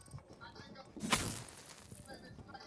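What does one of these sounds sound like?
An explosion bursts loudly nearby.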